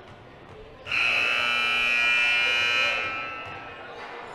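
A referee's whistle blows a long blast in an echoing gym.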